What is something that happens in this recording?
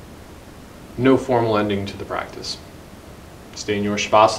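A man speaks calmly and closely into a microphone.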